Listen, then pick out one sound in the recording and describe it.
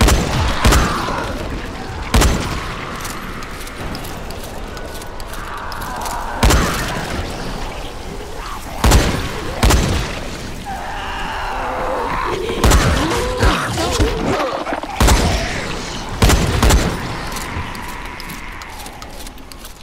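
Fires crackle and roar.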